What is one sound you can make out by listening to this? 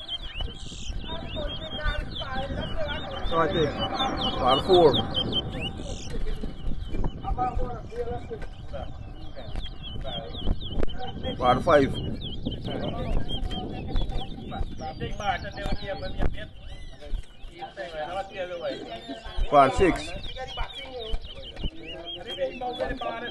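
A crowd of people talks in the background outdoors.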